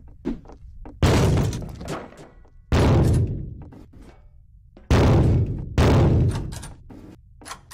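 Loud blasts boom and echo.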